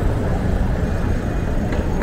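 Footsteps tap on a stone pavement nearby.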